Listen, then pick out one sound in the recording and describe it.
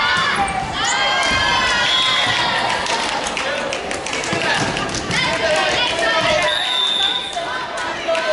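A volleyball thuds off hands.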